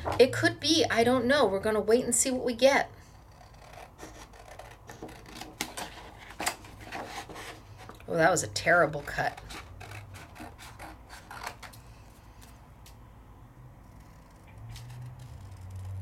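Scissors snip through thin card with short crisp cuts.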